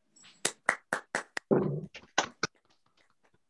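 Several people clap over an online call.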